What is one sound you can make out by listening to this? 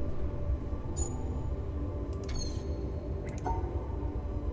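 Short electronic chimes and clicks sound from a puzzle panel.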